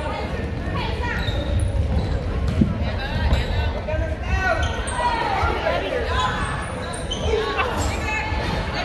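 Sneakers squeak on a hardwood floor in an echoing gym.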